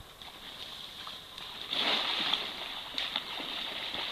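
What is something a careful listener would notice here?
A cast net splashes down onto the water.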